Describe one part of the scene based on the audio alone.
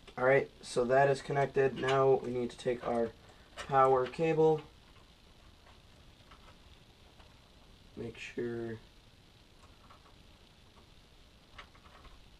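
Cables rustle and click against a metal case.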